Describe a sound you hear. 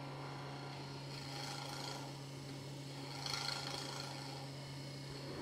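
A chisel scrapes softly against spinning wood.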